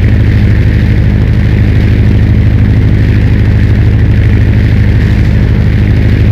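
An aircraft engine drones steadily and loudly.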